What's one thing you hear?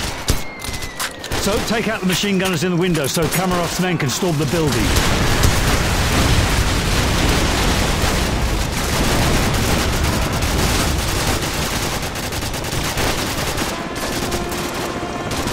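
Gunfire rattles and cracks in bursts.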